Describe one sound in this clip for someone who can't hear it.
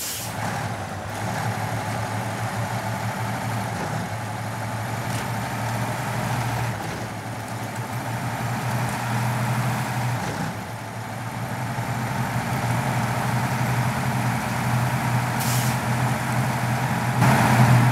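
Tyres crunch over snow and ice.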